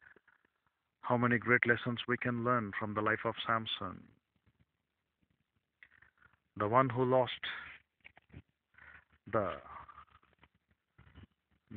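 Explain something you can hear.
A man speaks very close to the microphone in a low, casual voice.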